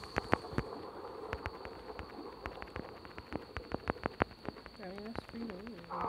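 A dog growls and snarls close by.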